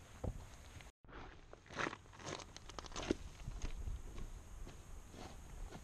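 Boots crunch and clatter on loose river stones.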